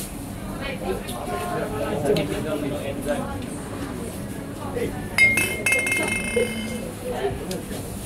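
A woman talks nearby in a lively way.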